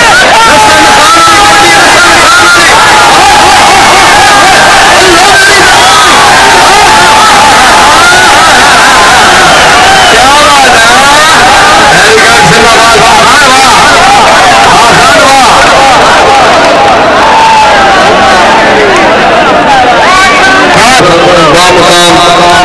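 A large outdoor crowd murmurs and cheers.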